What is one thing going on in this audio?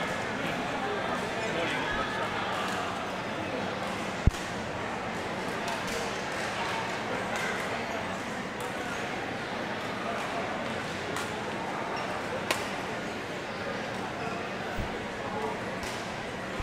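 A large hall echoes with a steady murmur of many voices.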